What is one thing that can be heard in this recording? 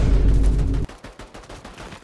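A pickaxe swings through the air with a whoosh.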